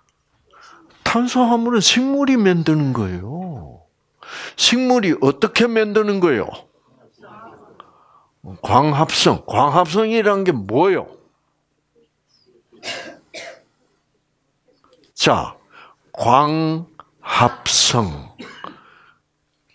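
An elderly man speaks with animation into a clip-on microphone.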